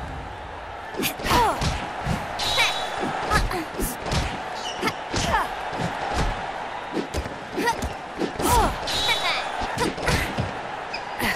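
Boxing gloves thump against each other and against bodies in quick punches.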